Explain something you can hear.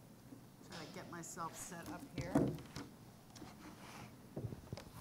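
A woman speaks quietly.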